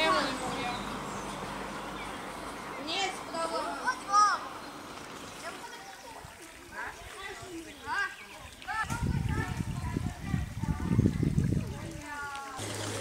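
A shallow stream trickles softly.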